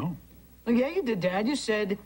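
A teenage boy speaks.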